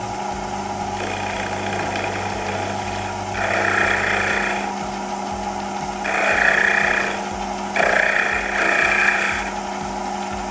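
A chisel scrapes against spinning wood in bursts.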